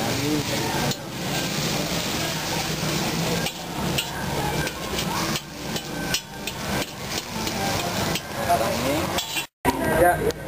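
Noodles sizzle as they fry in a hot pan.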